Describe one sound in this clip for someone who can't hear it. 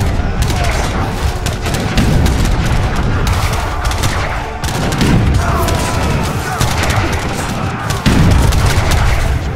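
Gunfire crackles in a dense, continuous battle.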